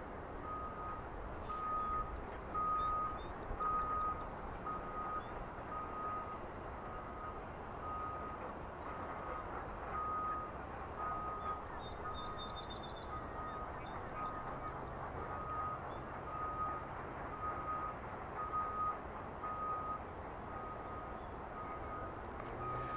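Water splashes softly as a heron wades through the shallows.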